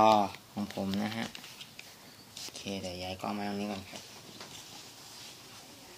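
Plastic cables rustle and knock as hands handle them.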